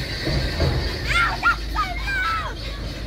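A young girl speaks in a high voice.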